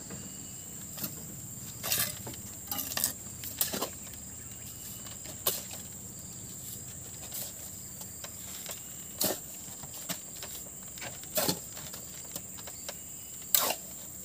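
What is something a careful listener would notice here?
A metal trowel scrapes and taps against mortar and brick.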